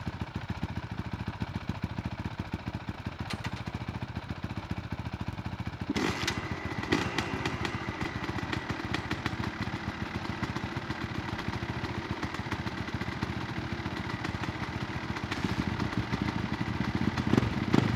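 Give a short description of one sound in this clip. A dirt bike engine idles with a rapid, steady putter.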